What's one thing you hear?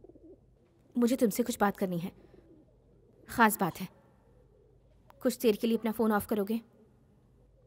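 A woman speaks quietly and tensely nearby.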